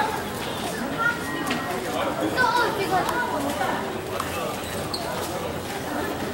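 Young women chatter and call out excitedly close by.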